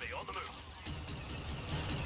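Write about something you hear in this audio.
A blaster rifle fires in rapid bursts.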